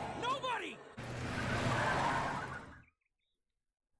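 Tyres screech as a pickup truck speeds off.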